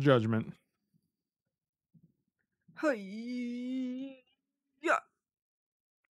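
A man speaks in short bursts, close to a microphone.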